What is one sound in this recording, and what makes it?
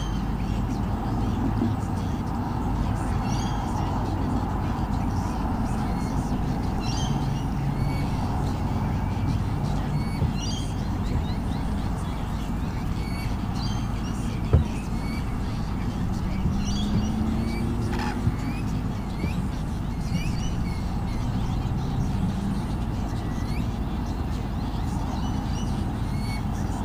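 Wind rustles through tree leaves.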